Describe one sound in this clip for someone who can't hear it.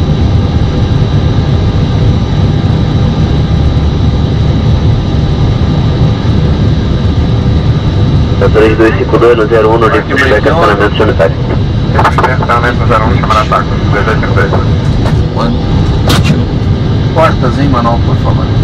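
Aircraft engines hum with a steady low rumble.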